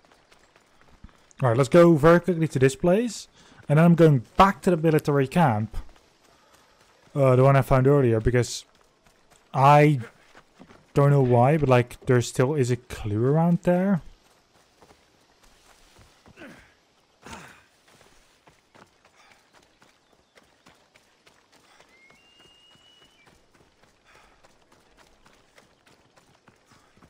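Footsteps patter quickly on dirt and stone.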